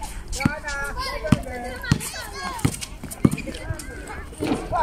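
A basketball bounces on a hard outdoor court in a steady dribble.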